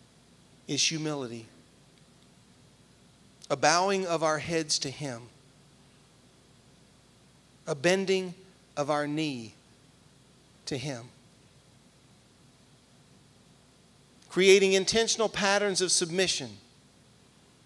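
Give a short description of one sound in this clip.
A man speaks with animation through a microphone and loudspeakers, in short bursts with pauses.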